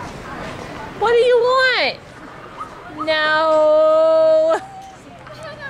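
A small child shouts loudly nearby.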